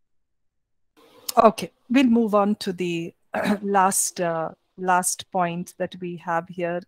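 A middle-aged woman speaks calmly through a headset microphone on an online call.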